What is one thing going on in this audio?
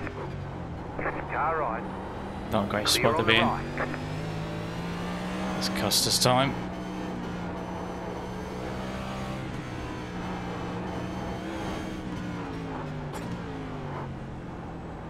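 A race car engine drones steadily, rising and falling as it changes gear.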